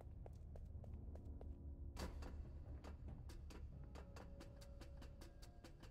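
Footsteps clang on metal stairs and grating.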